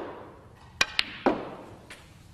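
Snooker balls click sharply together.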